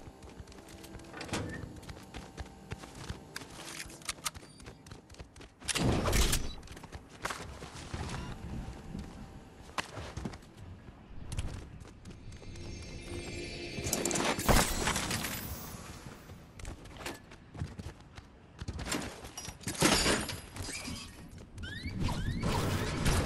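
Footsteps patter quickly on hard floors.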